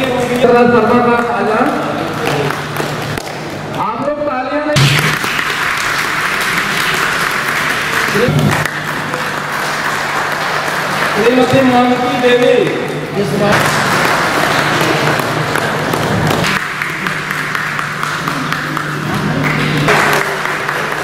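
A small crowd applauds steadily.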